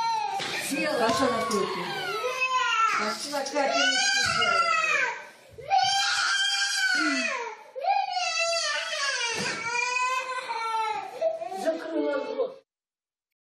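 A small child cries and wails loudly nearby.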